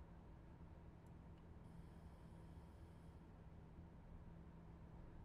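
A train engine hums with a low, steady rumble.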